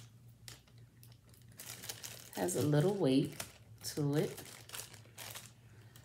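A plastic packet crinkles.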